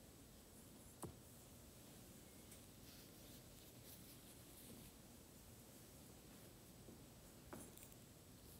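Small metal and glass items clink softly.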